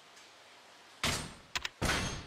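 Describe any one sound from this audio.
A soft chime sounds when a prompt pops up.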